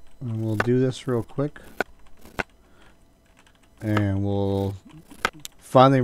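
A knife chops through a tomato on a board.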